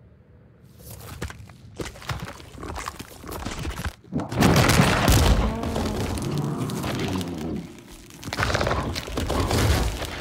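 Wet flesh squelches and tears.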